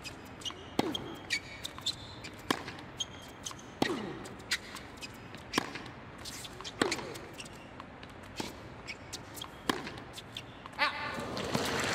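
Tennis rackets strike a ball back and forth in a sharp, steady rally.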